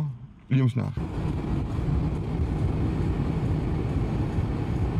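A car's engine and tyres rumble steadily while driving.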